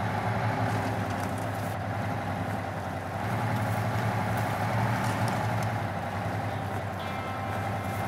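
Tyres crunch over snow.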